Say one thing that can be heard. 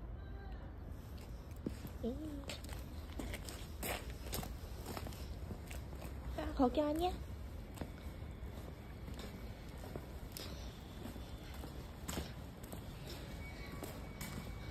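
Footsteps tap on paving stones.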